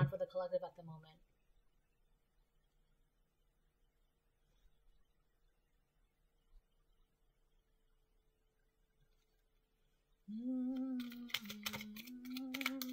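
Playing cards shuffle softly in hands.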